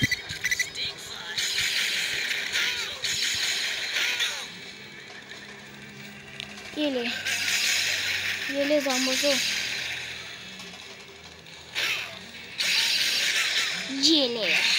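An energy beam hisses and crackles in loud bursts.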